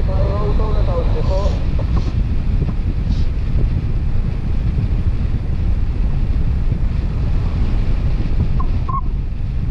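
Strong wind rushes and buffets loudly against a microphone.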